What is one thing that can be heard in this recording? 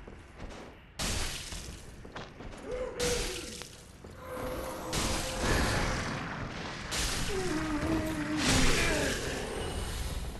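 Weapons clash and strike loudly in a fight.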